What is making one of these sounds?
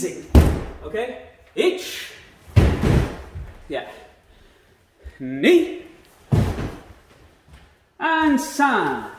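A man shouts sharply in a room with a slight echo.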